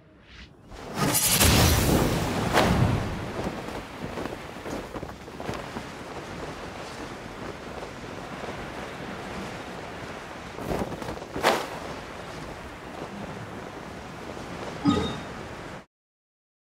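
Wind rushes past steadily during a long glide.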